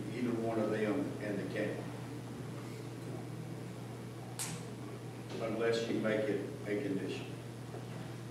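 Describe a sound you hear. A man speaks calmly through a microphone in a large echoing room.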